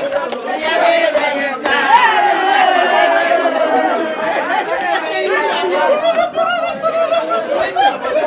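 Several women cheer and shout with excitement.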